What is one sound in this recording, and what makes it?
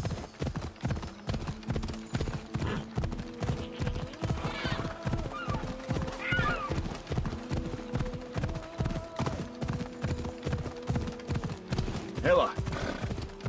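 Horse hooves pound steadily at a gallop over the ground.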